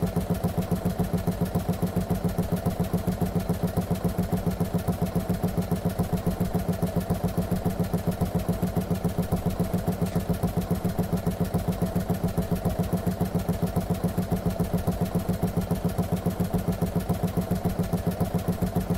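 An old tractor engine chugs steadily with a fast, even thumping beat.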